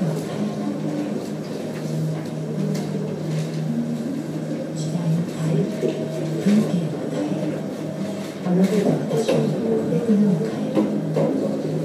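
A train rumbles along the tracks in the distance.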